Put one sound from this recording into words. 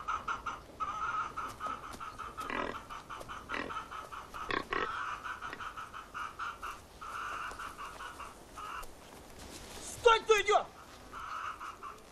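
A pig grunts.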